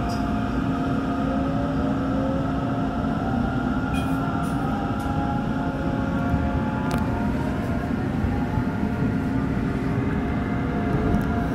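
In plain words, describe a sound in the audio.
Traction motors on an electric commuter train whine, rising in pitch as the train pulls away.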